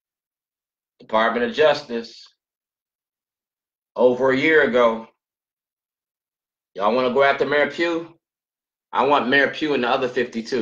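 A middle-aged man speaks calmly and close to a microphone, in short phrases.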